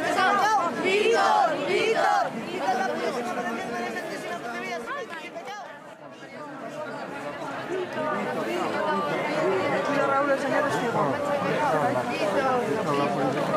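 A crowd of men and women shouts and sings loudly close by, outdoors.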